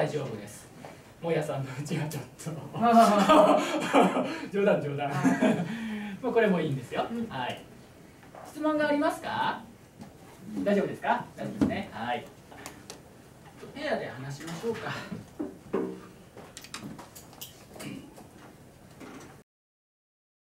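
A middle-aged man speaks with animation to a class.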